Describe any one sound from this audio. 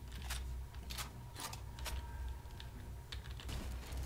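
A metal drawer slides open with a clatter.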